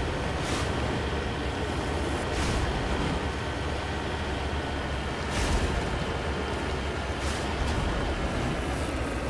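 A vehicle engine hums steadily while driving over rough ground.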